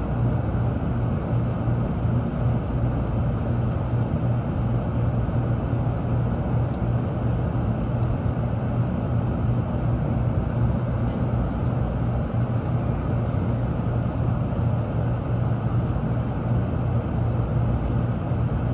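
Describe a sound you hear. A train's interior hums with a steady, low rumble.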